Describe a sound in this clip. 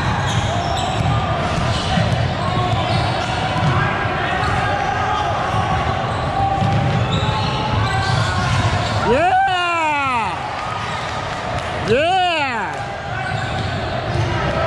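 Spectators murmur and chatter in a large echoing gym.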